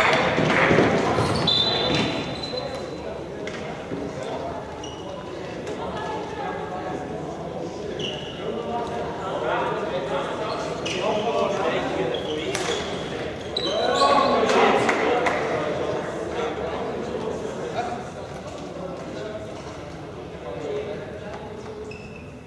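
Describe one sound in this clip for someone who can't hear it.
Shoes squeak on the court floor.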